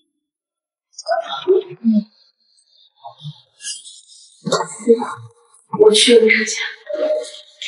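A young woman speaks brightly nearby.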